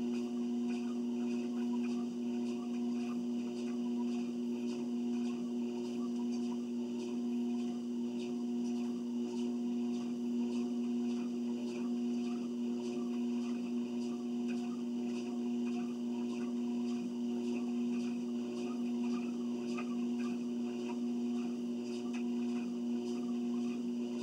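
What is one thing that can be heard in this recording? Footsteps thud on a moving treadmill belt.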